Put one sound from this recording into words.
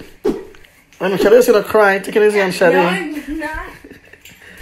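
A young boy laughs loudly.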